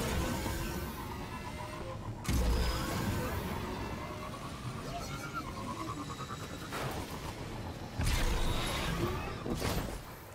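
A hovering vehicle's engine hums and whooshes.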